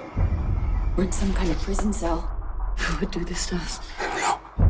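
A man speaks tensely in a low voice nearby.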